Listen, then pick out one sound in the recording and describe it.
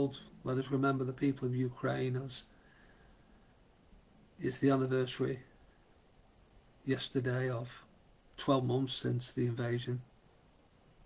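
A middle-aged man reads out calmly and slowly, close to a microphone, heard through an online call.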